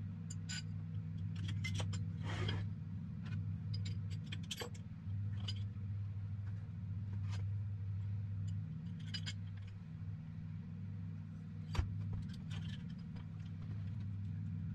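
A metal wrench clatters on a wooden bench.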